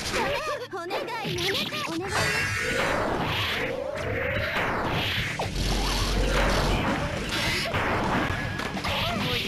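Game fighting effects whoosh and crash with hits and magic blasts.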